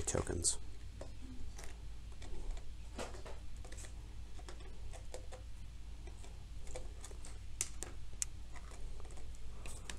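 Small plastic figures tap and click against a tabletop.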